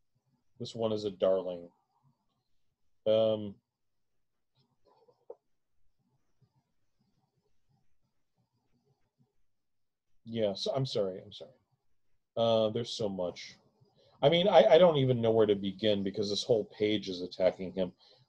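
A middle-aged man reads aloud calmly, close to a microphone, with pauses.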